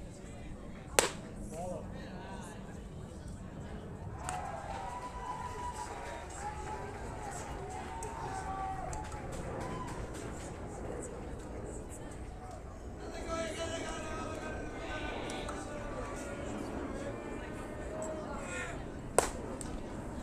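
A baseball smacks into a catcher's mitt with a sharp pop outdoors.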